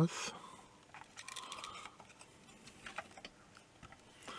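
A circuit board and wires rustle and click softly as they are handled.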